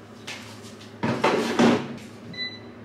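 A plastic basket slides into an appliance with a clatter.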